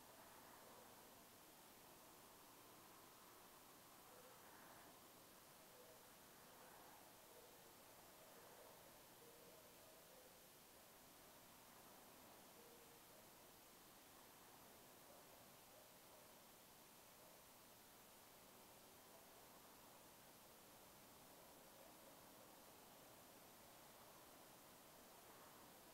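A man speaks very softly and calmly through a microphone.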